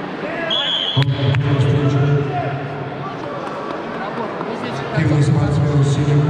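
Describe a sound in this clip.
A male referee shouts commands.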